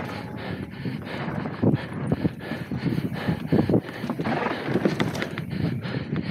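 Bike tyres clatter across wooden boards.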